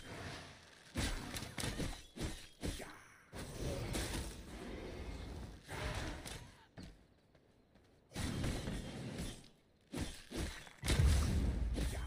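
Swords clash and strike in fights.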